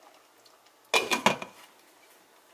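A lid clatters down onto a metal pot.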